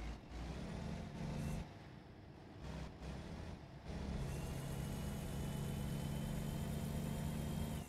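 A truck engine hums low and steady as it drives.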